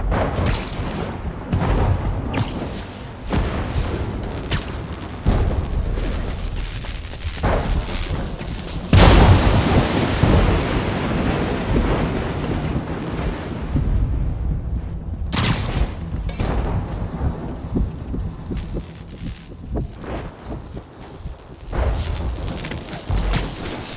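Web lines snap and whip repeatedly.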